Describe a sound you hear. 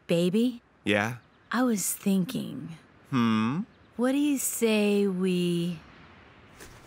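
A young woman speaks in a flat, dry voice.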